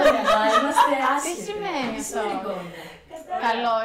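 A woman laughs loudly nearby.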